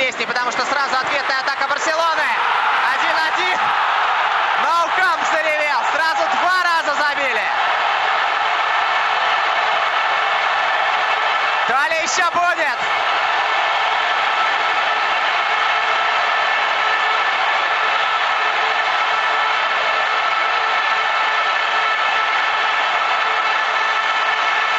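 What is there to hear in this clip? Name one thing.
A large stadium crowd cheers and roars loudly throughout.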